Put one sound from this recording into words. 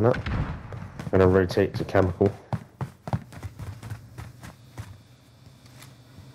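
Footsteps tap quickly across a hard floor and up stairs.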